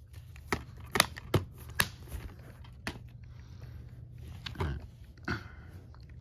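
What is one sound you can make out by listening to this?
A plastic case rattles and knocks as it is picked up.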